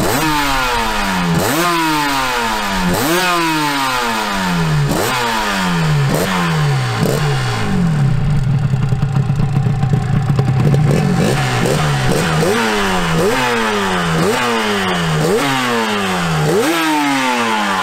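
A two-stroke motorcycle engine revs up sharply again and again, then drops back to idle.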